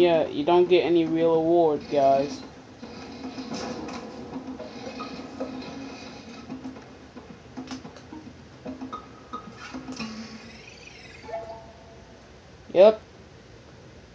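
Playful cartoon music and sound effects play through a television speaker.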